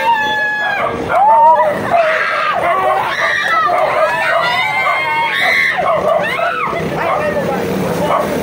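A young man talks loudly and with animation close by.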